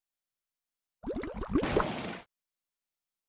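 Water splashes as a swimmer leaps up.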